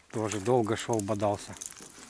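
A small fish splashes at the water's surface.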